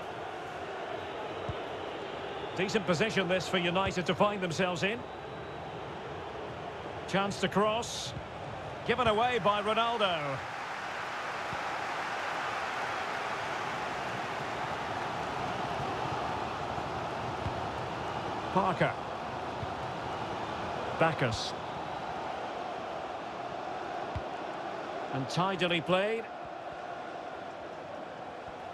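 A large stadium crowd murmurs and roars steadily in the distance.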